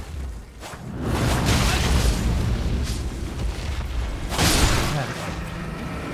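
A large creature roars.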